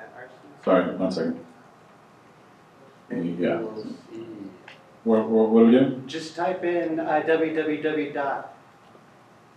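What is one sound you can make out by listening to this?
A man speaks through a microphone in a large room, pausing between phrases.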